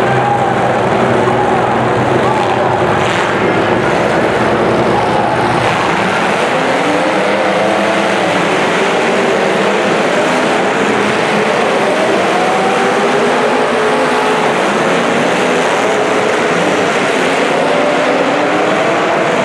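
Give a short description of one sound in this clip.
Car engines rev and roar loudly in a large echoing arena.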